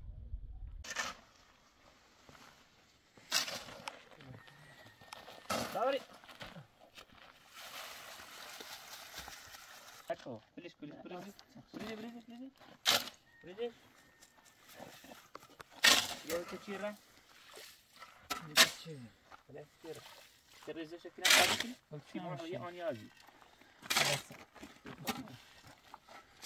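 Shovels scrape and scoop sand and gravel.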